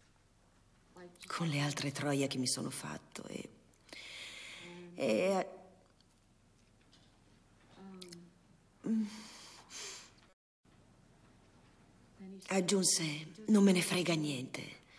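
A woman speaks emotionally into a microphone.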